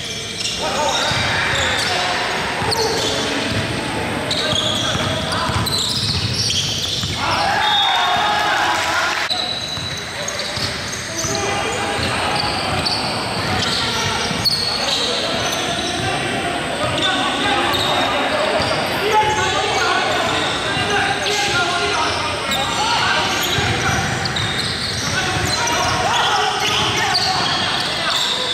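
Sneakers squeak on a hard court in a large echoing hall.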